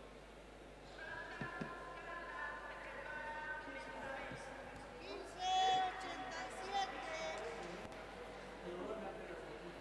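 Young men and women chat nearby in a large echoing hall.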